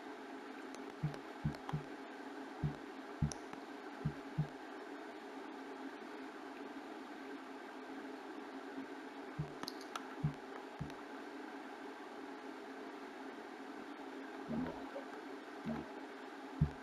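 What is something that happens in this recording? Soft interface clicks sound as a menu selection moves back and forth.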